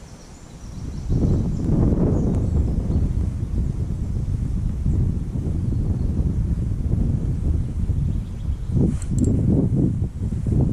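Wind blows hard and rumbles against the microphone outdoors.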